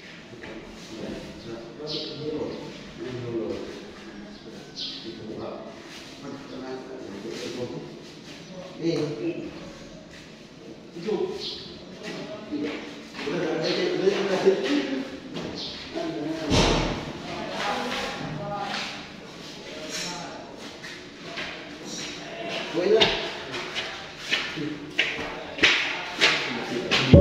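Men talk at a distance, heard echoing up a narrow shaft.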